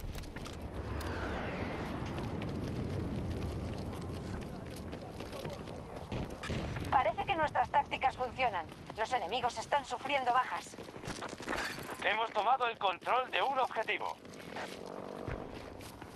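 Boots thud quickly on hard pavement as a soldier runs.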